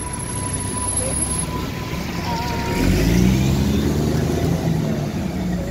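A bus drives past close by.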